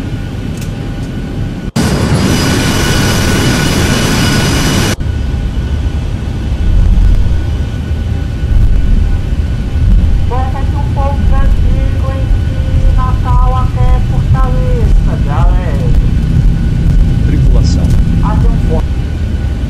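Jet engines rumble steadily as an airliner taxis.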